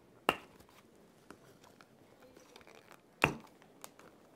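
Plastic model parts knock and click as they are pulled apart.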